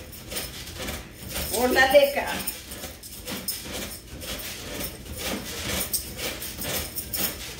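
A woman bounces on a creaking trampoline in a steady rhythm.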